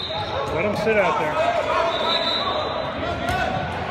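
A basketball bounces on a court floor.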